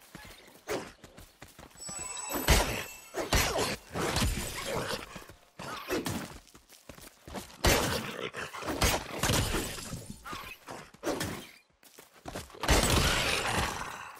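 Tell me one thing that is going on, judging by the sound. A wolf snarls and growls.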